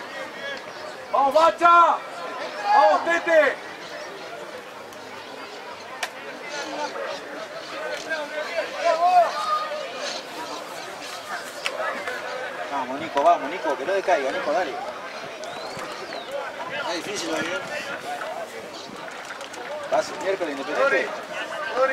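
Men shout loudly across an open field outdoors.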